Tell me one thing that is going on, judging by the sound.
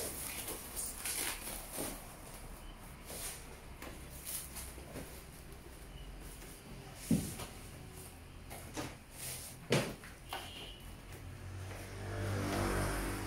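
Plastic wrap crinkles and rustles as a keyboard is handled.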